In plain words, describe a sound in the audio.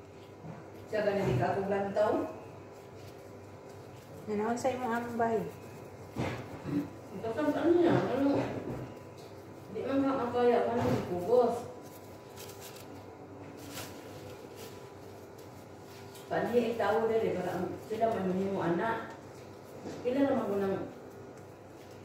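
A woman speaks calmly close by, in short phrases with pauses.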